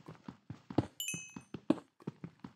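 A small item pops up with a short chime.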